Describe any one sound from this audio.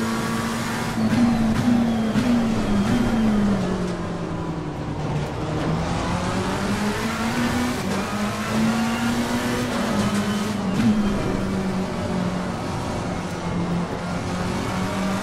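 A racing car engine roars, revving up and down as it shifts gears.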